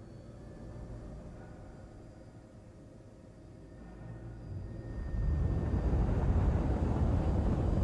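A spacecraft engine rumbles low and swells louder toward the end.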